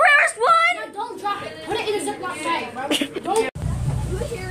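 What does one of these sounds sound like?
A young child talks nearby.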